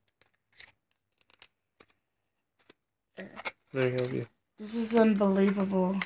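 A cardboard box rustles and scrapes as hands open it.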